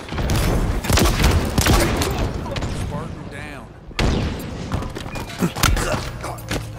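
Gunfire and explosions crackle and boom in a video game.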